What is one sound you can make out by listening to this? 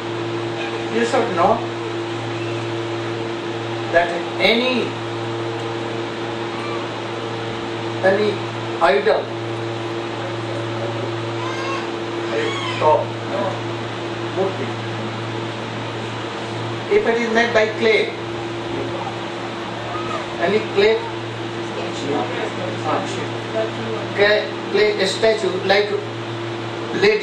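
An elderly man speaks calmly and slowly into a microphone, with pauses.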